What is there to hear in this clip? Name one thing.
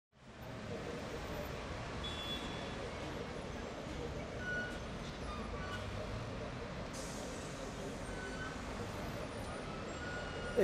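City traffic hums steadily below, with engines and tyres on the road.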